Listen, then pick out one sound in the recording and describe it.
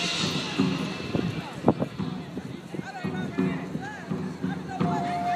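A marching band plays brass and drums outdoors.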